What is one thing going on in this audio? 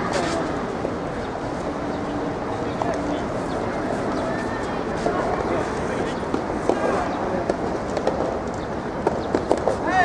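Tennis balls are struck with rackets in sharp pops outdoors.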